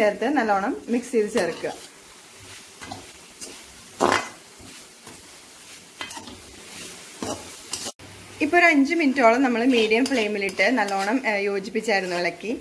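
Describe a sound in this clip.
A metal spatula scrapes and stirs in a metal pan.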